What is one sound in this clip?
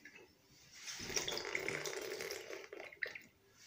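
Liquid gurgles out of a glass bottle into a young boy's mouth.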